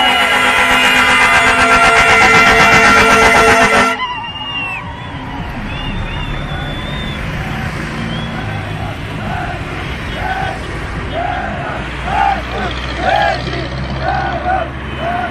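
Vehicle engines rumble steadily close by.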